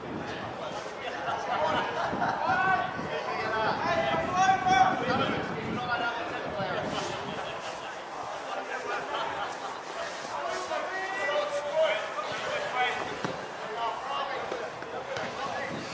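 Young women shout and call to each other across an open pitch outdoors.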